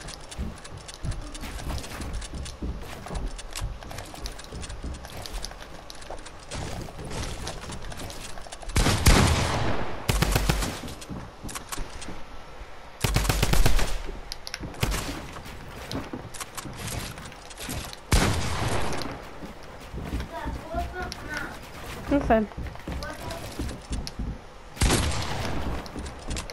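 Building pieces snap rapidly into place with quick clattering clicks.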